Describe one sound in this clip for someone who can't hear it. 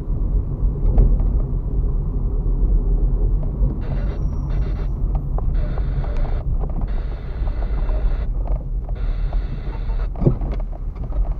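A car body rattles and thumps over bumps.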